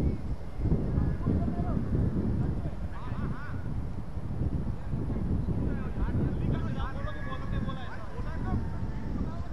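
Men call out to each other across an open field.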